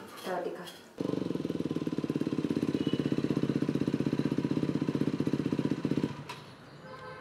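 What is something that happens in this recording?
A motorcycle engine idles with a steady rumble, then cuts off.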